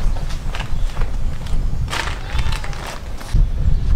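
Footsteps scuff on paving stones.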